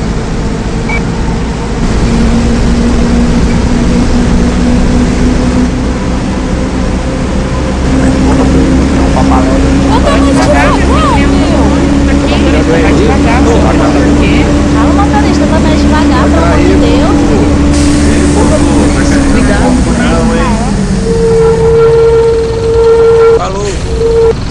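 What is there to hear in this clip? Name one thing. A bus engine drones steadily, its pitch rising and then falling away as the bus slows.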